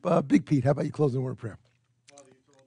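An older man speaks loudly into a microphone.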